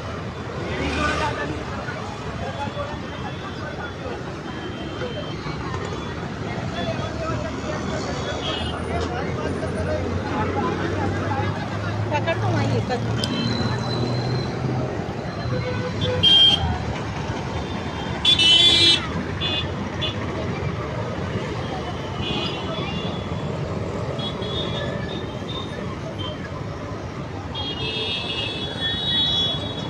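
Voices murmur faintly in a busy outdoor market.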